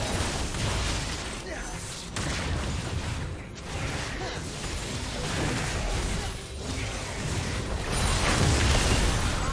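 Magic spells blast and crackle during a fight.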